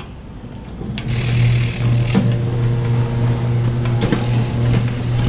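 A rotary numbering machine's motor hums as it runs.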